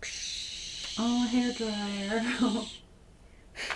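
A young girl speaks briefly and calmly, close by.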